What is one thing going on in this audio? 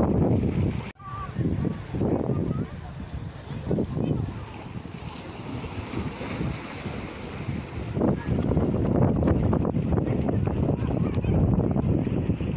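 Small waves wash gently against rocks.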